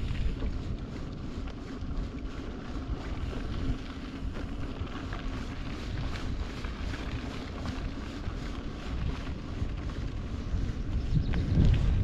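Bicycle tyres crunch over a dirt road.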